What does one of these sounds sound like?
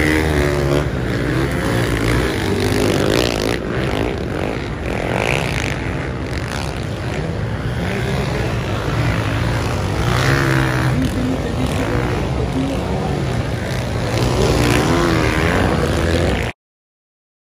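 Motorbike engines roar and rev loudly as the bikes race past.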